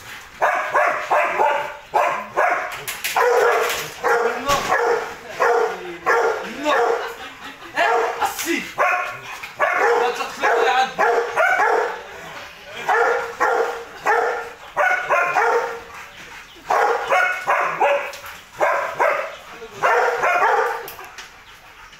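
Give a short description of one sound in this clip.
A large dog barks loudly and repeatedly close by.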